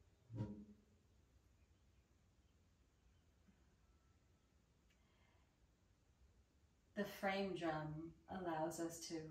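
A woman speaks calmly and warmly, close by.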